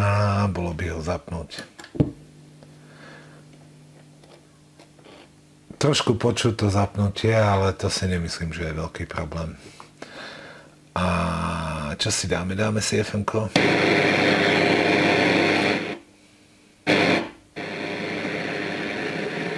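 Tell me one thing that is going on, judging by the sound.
A knob on a radio clicks as it turns.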